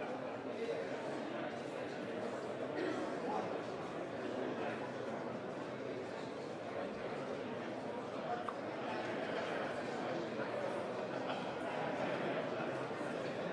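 Many people murmur and chat in a large echoing hall.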